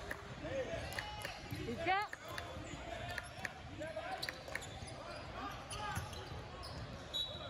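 Voices of players and onlookers echo around a large hall.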